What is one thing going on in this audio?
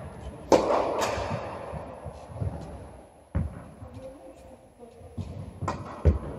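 A tennis ball is struck with a racket in a large echoing hall.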